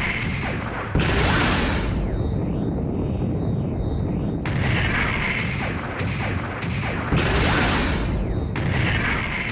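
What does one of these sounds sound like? A robot's jet thrusters roar in bursts.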